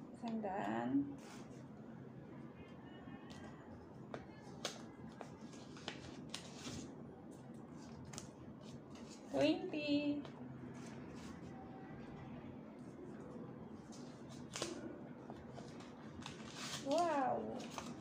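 Paper envelopes rustle and crinkle in hands.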